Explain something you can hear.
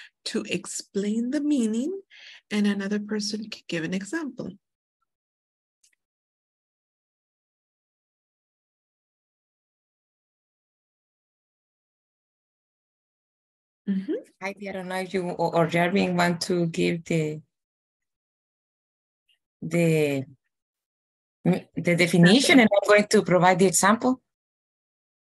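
A woman speaks calmly over an online call, pausing between phrases.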